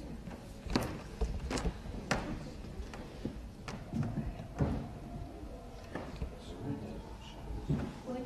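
A young woman speaks calmly into a microphone over a loudspeaker in a large room.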